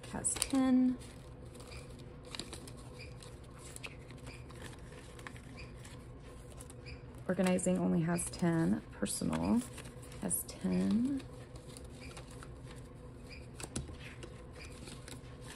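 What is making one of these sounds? Paper banknotes rustle softly as they are handled.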